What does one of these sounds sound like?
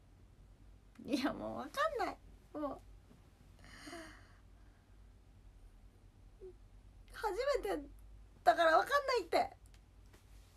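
A young woman speaks close by with animation.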